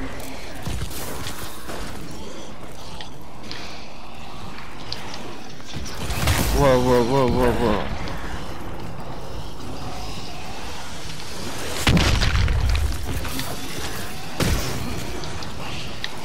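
An energy gun fires in short bursts.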